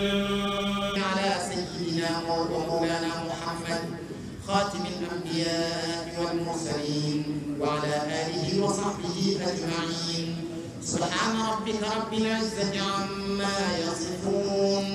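A man chants loudly in a melodic voice through a microphone.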